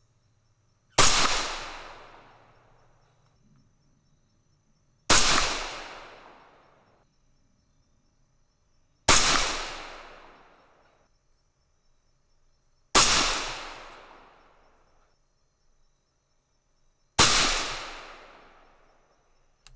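A rifle fires loud single shots outdoors, each echoing and fading.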